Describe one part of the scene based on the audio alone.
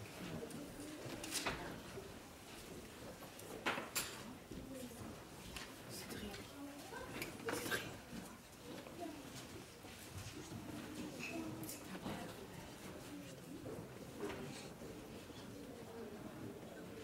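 A young man speaks calmly into a microphone, heard through loudspeakers in a large room.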